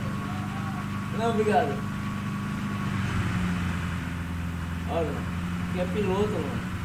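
A pickup truck engine drones as it drives.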